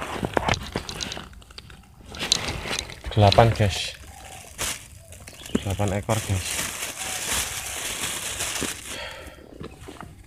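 A plastic bag rustles and crinkles close by.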